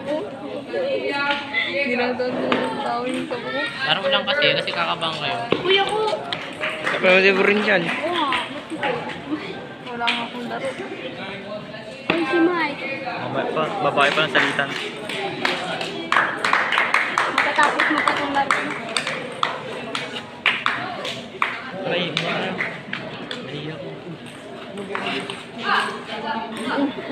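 A ping-pong ball clicks back and forth on a table and paddles.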